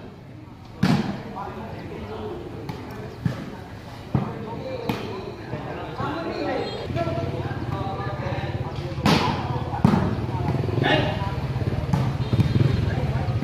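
A ball is kicked and struck with sharp thumps.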